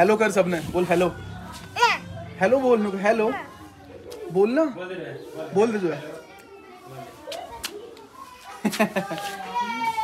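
A young child talks and laughs close by.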